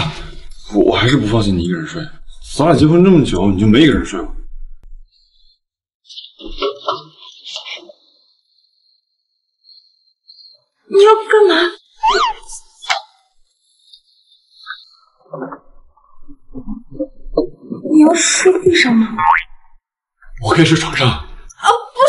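A young man speaks in a concerned voice, close by.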